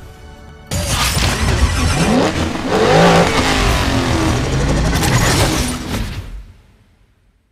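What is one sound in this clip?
A race car engine revs loudly.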